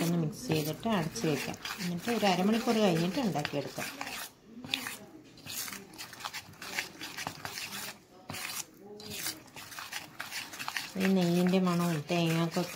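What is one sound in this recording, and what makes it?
A spoon stirs thick batter in a metal pot with soft squelching.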